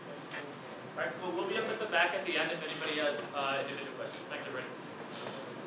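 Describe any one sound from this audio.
A man speaks briefly over a loudspeaker.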